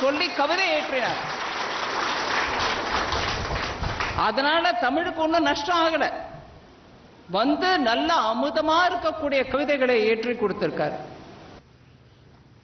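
An elderly woman speaks firmly through a microphone and loudspeakers.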